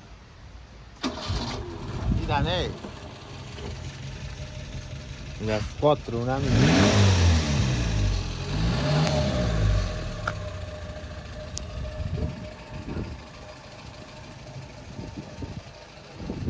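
A four-cylinder petrol Dacia 1300 engine idles.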